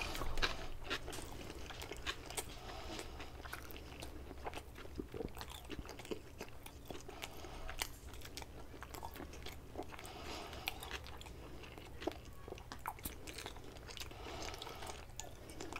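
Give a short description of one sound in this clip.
A man smacks his lips wetly while eating.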